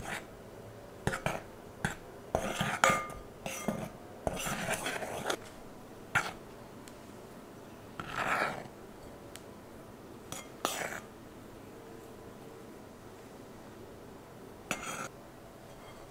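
A spoon stirs flour and clinks against a glass bowl.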